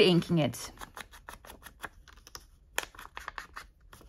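A rubber stamp taps down onto paper.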